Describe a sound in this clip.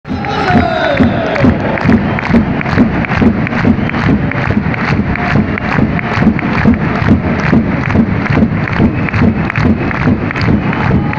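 A large crowd chants loudly in a big echoing arena.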